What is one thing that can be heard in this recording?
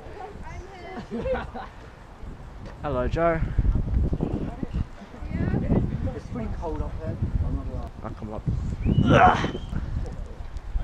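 Young men talk and call out nearby, outdoors.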